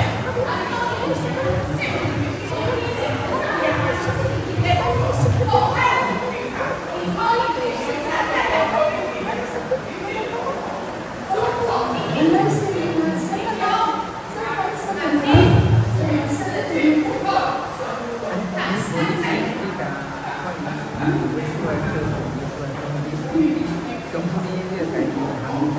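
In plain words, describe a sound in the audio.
Middle-aged men chat nearby in a lively way.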